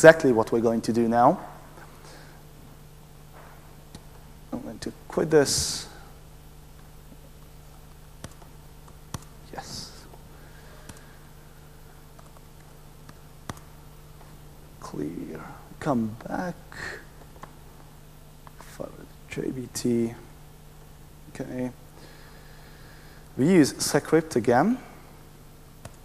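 A young man speaks calmly into a microphone, in short bursts with pauses.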